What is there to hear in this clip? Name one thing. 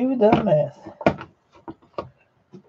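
A plastic case clicks and knocks as it is handled.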